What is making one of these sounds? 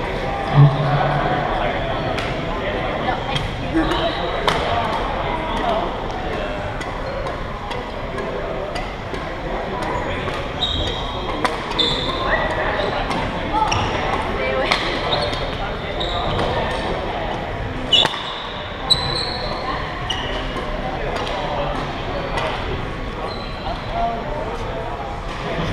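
A crowd of young people chatters nearby.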